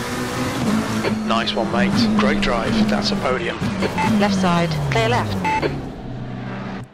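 Another racing car roars past close by.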